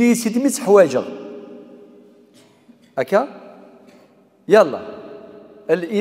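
An elderly man speaks with animation into a microphone in an echoing room.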